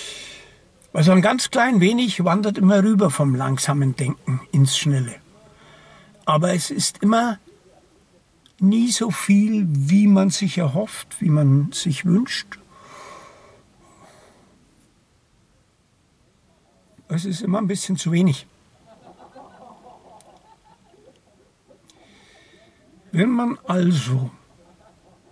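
An older man talks calmly close by, in pauses.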